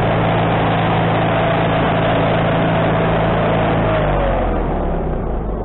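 A band saw blade cuts through a log with a loud whine.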